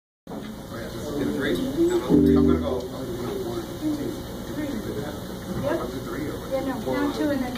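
An electric guitar plays chords.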